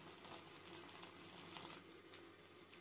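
Water pours into a pot of thick liquid.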